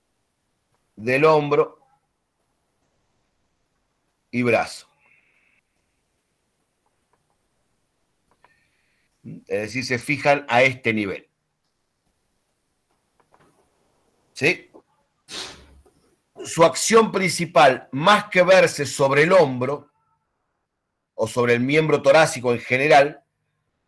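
A man speaks calmly through a microphone on an online call, in short phrases with pauses.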